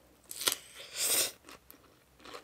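A woman slurps noodles loudly, close up.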